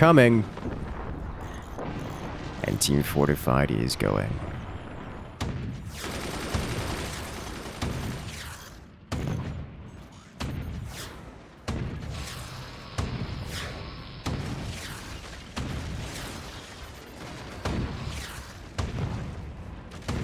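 Heavy guns fire again and again.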